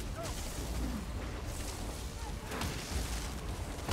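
A magical blast bursts with a roaring whoosh.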